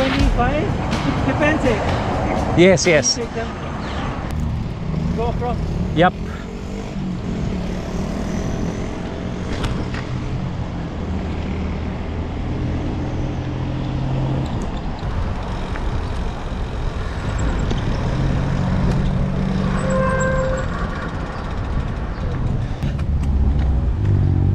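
Bicycle tyres roll over pavement.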